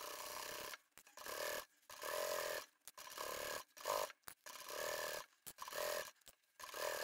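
A sewing machine stitches in short, quick bursts with pauses between them.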